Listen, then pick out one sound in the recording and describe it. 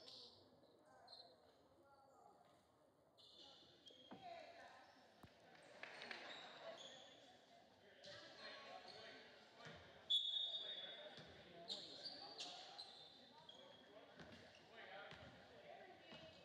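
Spectators murmur in the stands.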